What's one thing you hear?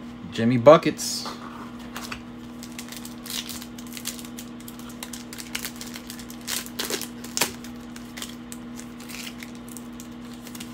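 Foil card packs crinkle and rustle close by.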